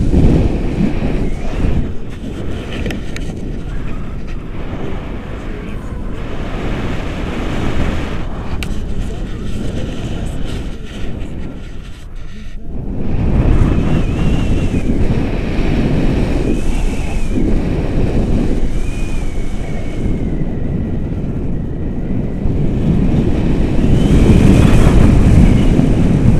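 Wind rushes and buffets the microphone.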